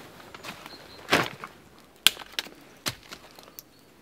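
Dry twigs snap and crack as a hand breaks them.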